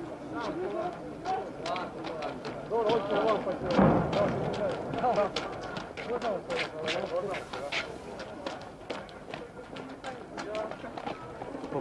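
Footsteps shuffle on a street.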